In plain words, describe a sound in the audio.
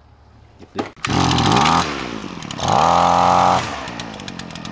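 A pull cord is yanked on a small petrol engine.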